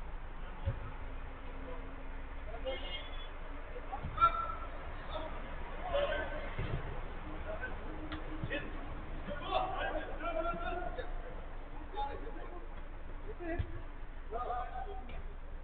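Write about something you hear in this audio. Men shout to each other from a distance, outdoors.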